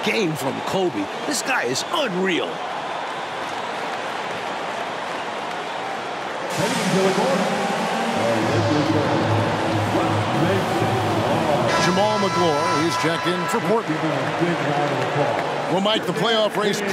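A large arena crowd murmurs and cheers.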